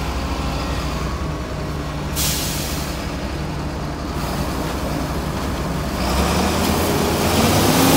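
A harvester engine rumbles steadily close by.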